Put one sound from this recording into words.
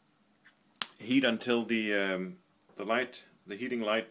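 A button clicks as a finger presses it.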